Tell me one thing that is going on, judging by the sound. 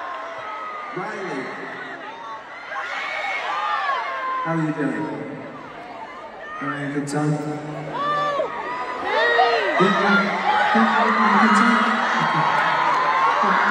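A large crowd screams and cheers loudly close by.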